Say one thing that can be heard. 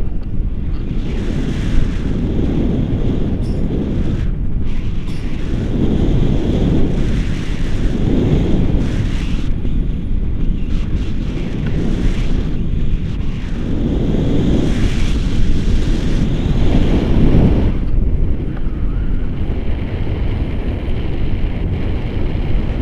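Wind buffets a microphone in flight.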